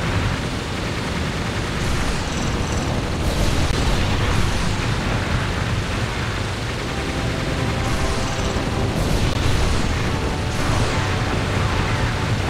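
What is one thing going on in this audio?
Rapid gunfire blasts from a flying craft.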